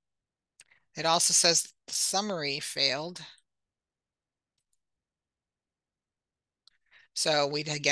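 A woman speaks calmly and clearly into a microphone, as if on an online call.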